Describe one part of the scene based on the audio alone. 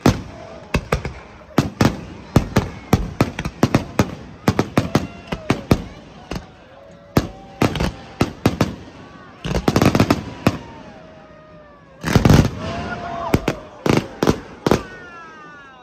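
Fireworks burst with loud booms and cracks outdoors.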